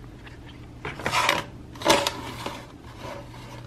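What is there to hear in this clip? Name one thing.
A metal tray scrapes across a wooden surface.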